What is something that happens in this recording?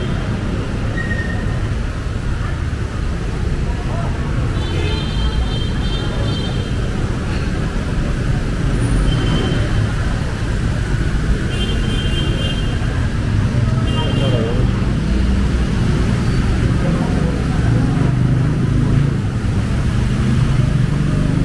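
Motor traffic splashes through deep floodwater nearby.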